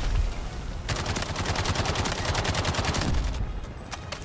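A rifle fires a quick burst.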